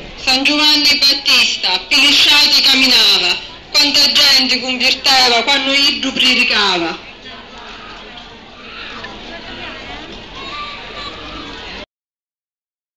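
A walking crowd chatters outdoors, with voices close by.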